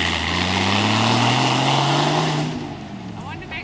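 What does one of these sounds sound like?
Tyres spin and skid on grass and dirt.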